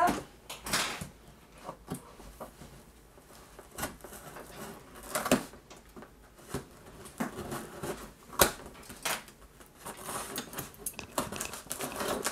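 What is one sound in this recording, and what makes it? A cardboard box scrapes and thumps as it is shifted on a wooden table.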